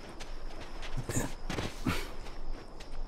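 Boots scrape and thud while climbing over a fallen log.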